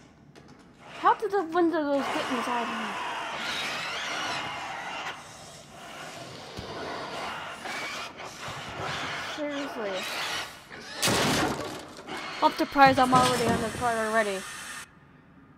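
A creature lets out shrill, gliding shrieks.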